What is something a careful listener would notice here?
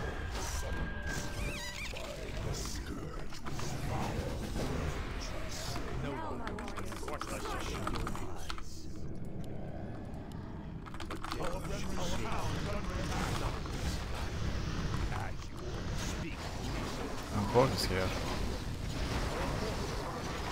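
Weapons clash and spells burst in a busy battle.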